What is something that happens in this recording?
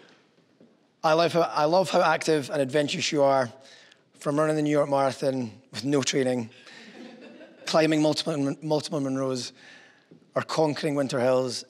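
A man speaks calmly and earnestly, close to a microphone, in an echoing room.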